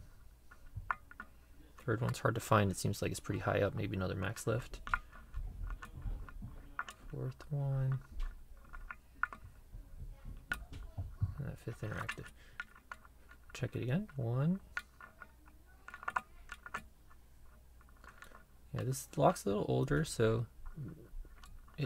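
A metal pick clicks and scrapes softly inside a lock.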